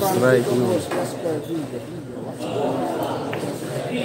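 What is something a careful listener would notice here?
Billiard balls clack together on a pool table.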